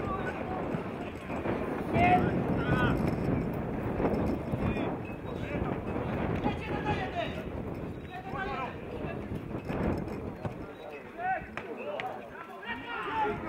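Young men shout to each other across an outdoor field.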